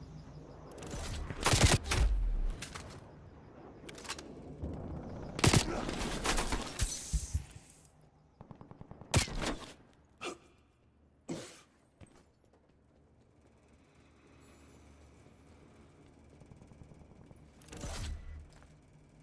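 Gunshots crack in short, loud bursts.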